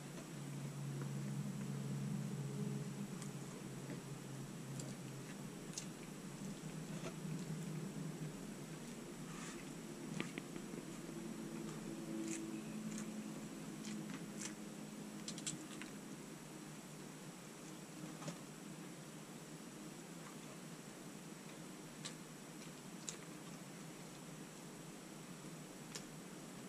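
A man chews and munches food close by.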